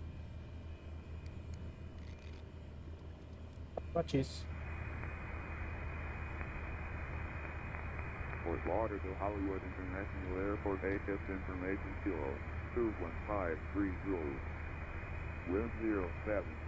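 A small propeller plane's engine hums steadily at idle.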